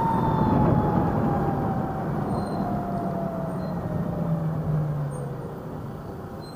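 An electric motor whines and drops in pitch as a scooter slows down.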